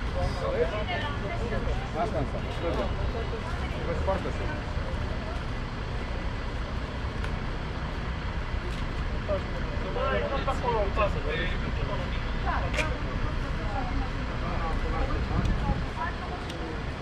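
Traffic rumbles steadily in the street.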